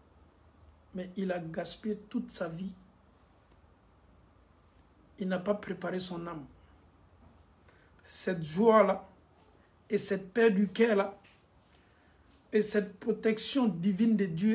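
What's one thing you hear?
A man speaks calmly and close up, in short bursts with pauses.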